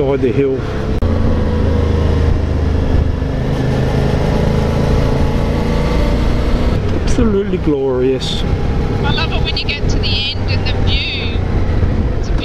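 A motorcycle engine hums steadily at cruising speed.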